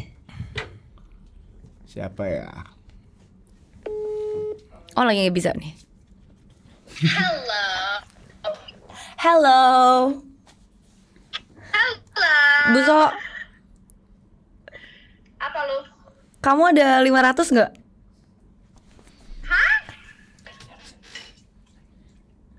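A young woman speaks animatedly into a microphone in short bursts.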